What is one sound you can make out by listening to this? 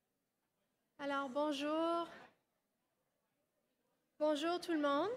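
A woman speaks through a microphone and loudspeakers in a large room.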